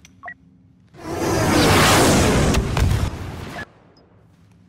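A spacecraft engine roars loudly.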